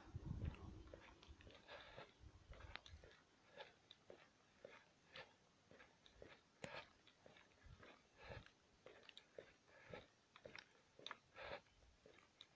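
Footsteps crunch steadily on pavement.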